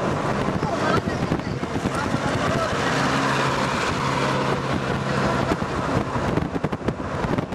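A jeep's engine drones as it passes close by.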